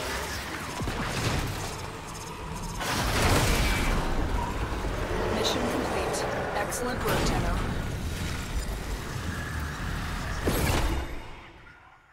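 Electric crackling rumbles loudly as a mission ends.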